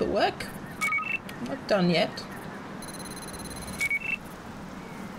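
An electronic scanner beeps in short tones.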